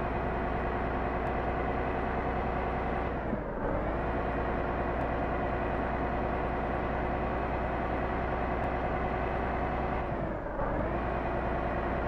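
A heavy truck engine drones steadily from inside the cab.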